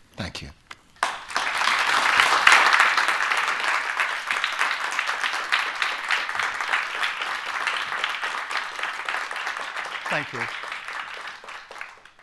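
A crowd applauds loudly in a large room.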